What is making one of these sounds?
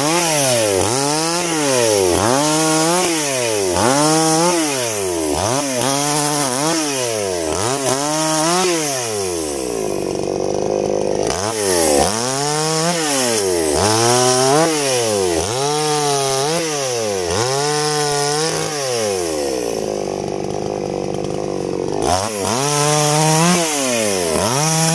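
A chainsaw engine revs up and down repeatedly, close by, outdoors.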